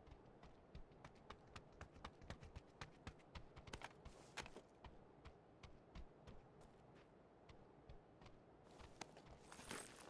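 Footsteps tap quickly on a hard surface.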